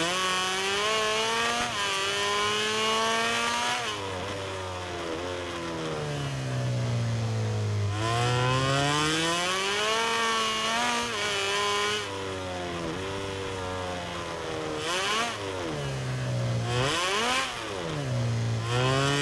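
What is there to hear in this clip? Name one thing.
A motorcycle engine screams at high revs, rising and falling as it shifts gears and brakes.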